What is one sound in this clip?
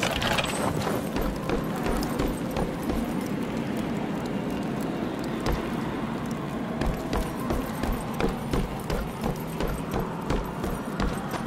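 Heavy armored footsteps thud at an even pace.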